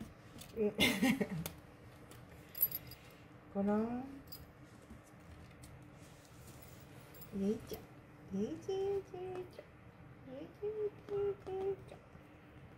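A small kitten mews in short high cries.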